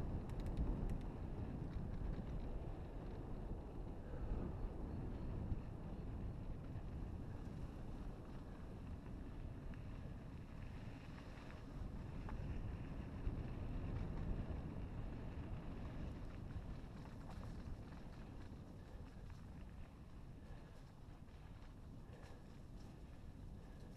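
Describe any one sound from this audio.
Bike tyres roll and crunch over a dirt trail.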